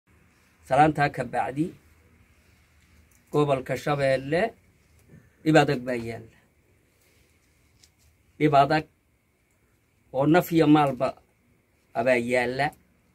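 An elderly man speaks calmly in short phrases with pauses, close by.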